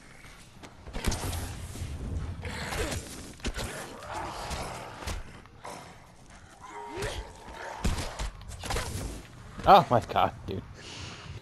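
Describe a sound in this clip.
A heavy blade hacks into flesh with wet thuds.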